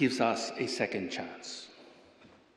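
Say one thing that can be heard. A man speaks into a microphone in a large chamber.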